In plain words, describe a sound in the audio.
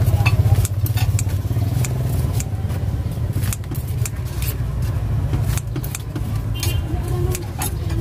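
Scissors snip through crispy fried food.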